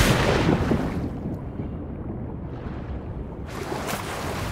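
Muffled underwater rumbling fills the surroundings.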